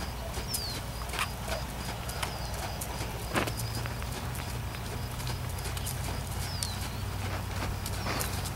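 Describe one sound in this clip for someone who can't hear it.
A horse canters on soft sand with dull hoof thuds.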